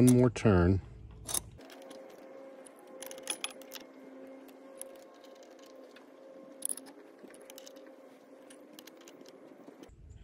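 A metal wrench clicks and scrapes against a metal fitting.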